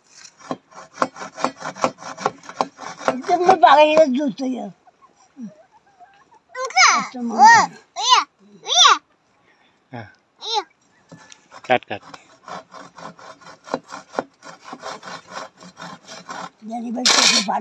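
A hand saw rasps quickly back and forth through wood.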